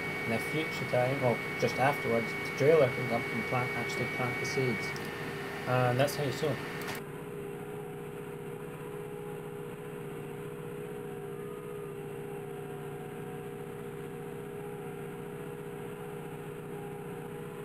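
A tractor engine drones under load while ploughing, heard from inside the cab.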